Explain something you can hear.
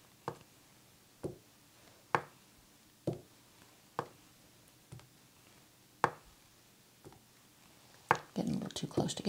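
A paintbrush taps lightly on a canvas at a slow, steady pace.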